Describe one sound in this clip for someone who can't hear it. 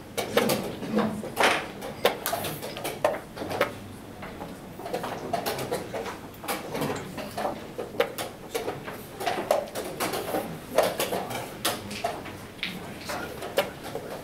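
A chess clock button clicks.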